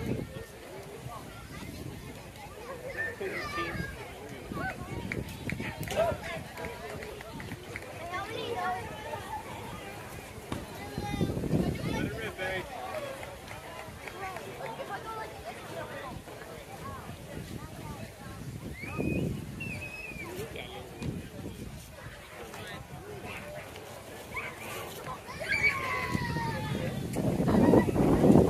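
Young players call out to each other across an open outdoor field.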